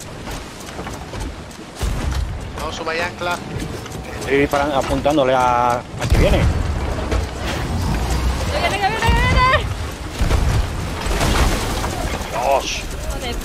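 Stormy sea waves crash and roar.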